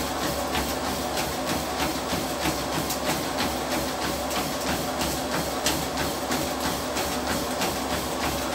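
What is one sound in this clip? A treadmill motor and belt whir steadily.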